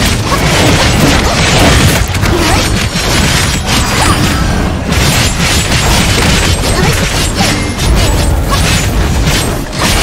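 Fiery explosions boom and roar.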